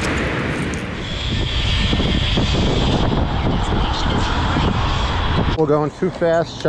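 Wind rushes past a microphone outdoors.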